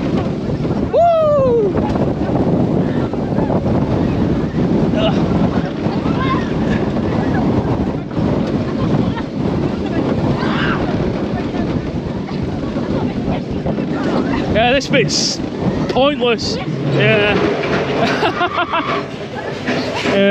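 Young riders scream and shout on a roller coaster.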